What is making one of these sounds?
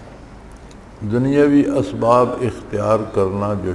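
An elderly man speaks slowly and solemnly into a microphone.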